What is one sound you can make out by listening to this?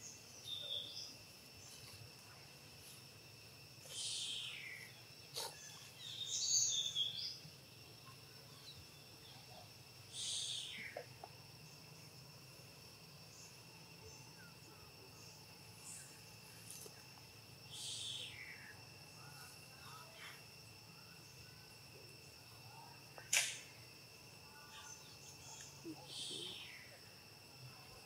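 Dry leaves rustle under moving monkeys.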